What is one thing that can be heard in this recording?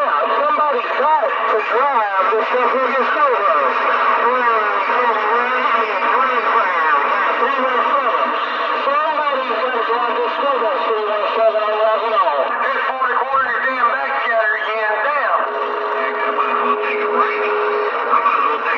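A radio receiver plays warbling, crowded chatter and static through its small loudspeaker.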